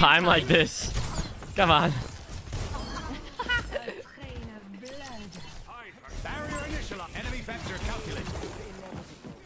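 Game weapons fire and zap.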